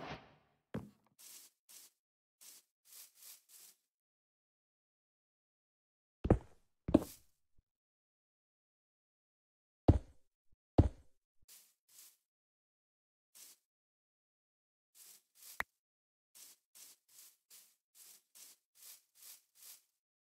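Footsteps crunch on grass.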